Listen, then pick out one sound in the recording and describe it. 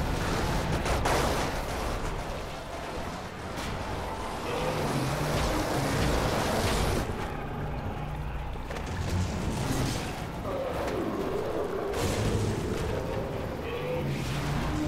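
Heavy blows thud and crash during a brawl.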